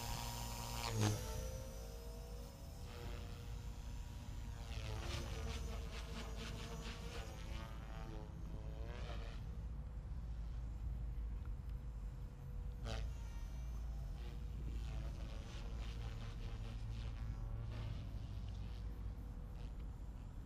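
A model helicopter buzzes overhead, its pitch rising and falling as it flies.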